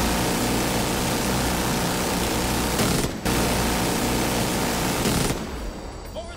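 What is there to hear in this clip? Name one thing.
A mounted machine gun fires in a rapid, roaring burst.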